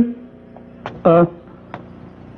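A young man calls out a short word nearby.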